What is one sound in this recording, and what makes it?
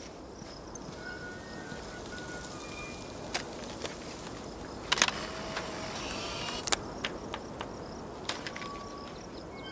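A small bird chirps nearby.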